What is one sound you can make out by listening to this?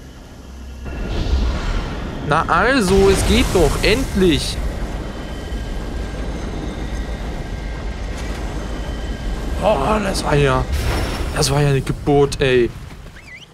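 A shimmering magical hum swells and fades.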